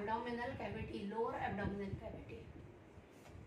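A woman speaks calmly into a clip-on microphone.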